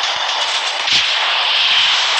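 A flare pistol fires with a sharp bang.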